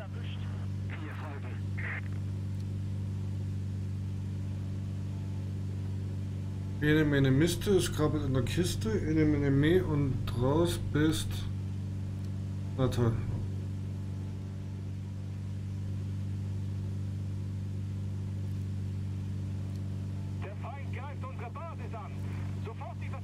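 An aircraft engine drones steadily.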